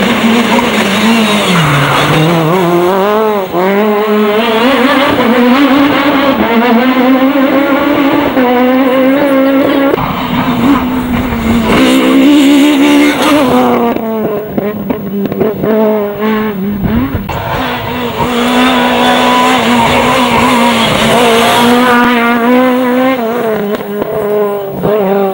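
A rally car engine roars loudly and revs up and down through the gears.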